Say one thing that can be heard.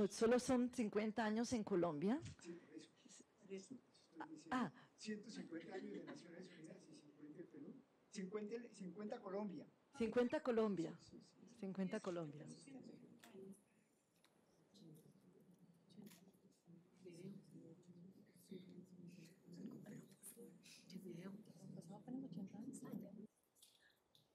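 A woman speaks calmly into a microphone in a room with a slight echo.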